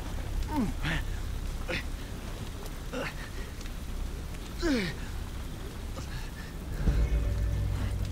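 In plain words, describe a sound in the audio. Footsteps squelch through wet mud.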